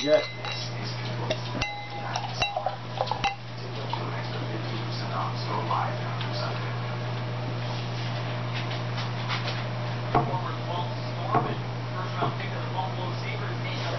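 Beer pours and foams into a glass.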